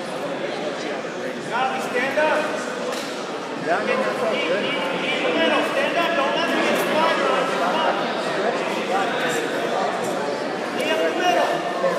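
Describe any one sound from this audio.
A crowd of men and women shouts and chatters in a large echoing hall.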